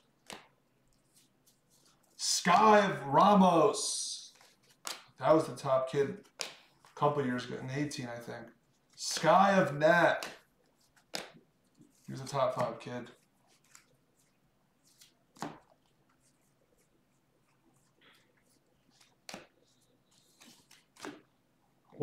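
Trading cards slide and flick against each other in a person's hands.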